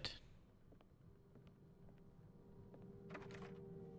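A door handle clicks as a door opens.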